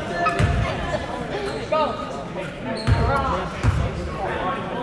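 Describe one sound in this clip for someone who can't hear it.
A basketball bounces on a hard floor in an echoing gym.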